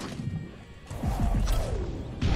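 A bright magical whoosh shimmers and swells.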